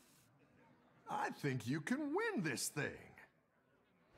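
A game character speaks a short line.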